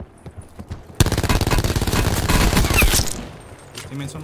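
An automatic rifle fires rapidly in a video game.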